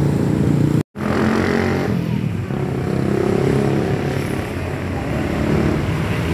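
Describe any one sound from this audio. Bus horns honk loudly outdoors.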